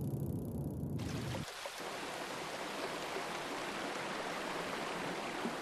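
Water gushes down in a torrent.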